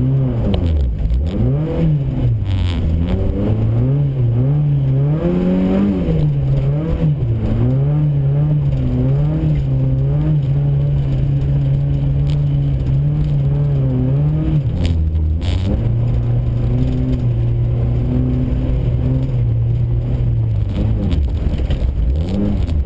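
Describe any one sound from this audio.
A car engine revs up and down loudly from inside the car.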